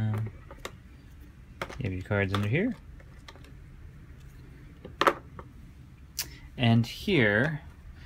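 Plastic pieces click and rattle as a hand moves them in a box.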